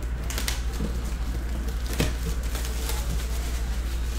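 Plastic wrap crinkles as hands tear it off a box.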